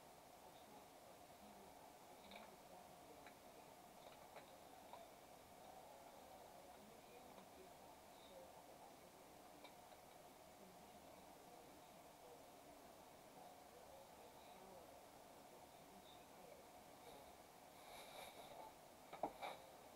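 Soft menu clicks and blips sound now and then.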